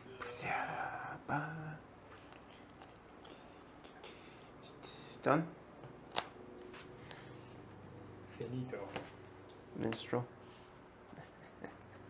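Playing cards are shuffled and slapped on a table.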